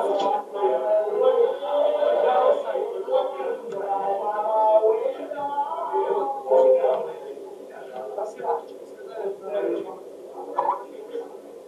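A man talks close to the microphone through an online call.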